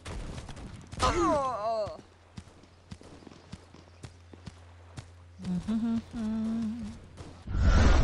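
A young woman speaks close to a microphone.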